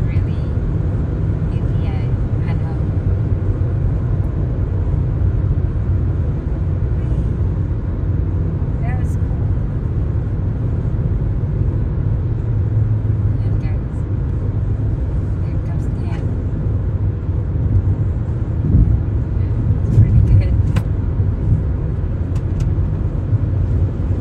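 A car engine hums steadily with road rumble from inside.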